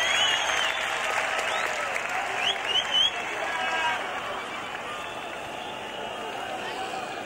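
A large crowd cheers, whistles and shouts outdoors.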